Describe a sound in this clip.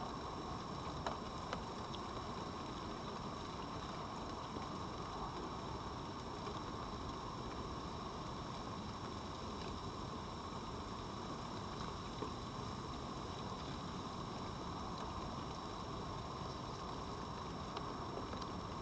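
A fox crunches food from the ground with small, scattered clicks.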